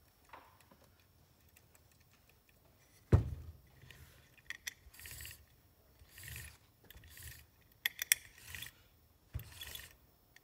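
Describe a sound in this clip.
Small plastic parts click and knock as they are handled.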